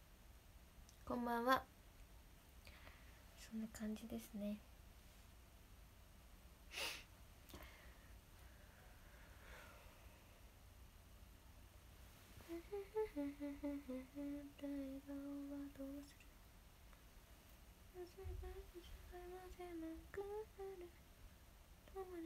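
A young woman speaks softly and casually, close to a microphone, with pauses.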